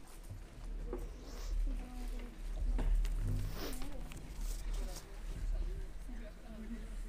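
Paper sheets rustle.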